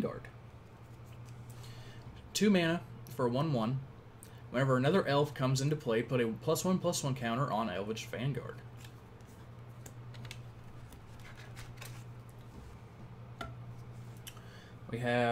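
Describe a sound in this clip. Playing cards rustle and click as they are handled.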